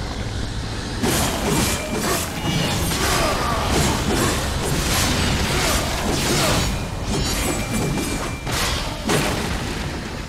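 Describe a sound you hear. A sword slashes and clangs against creatures in a fight.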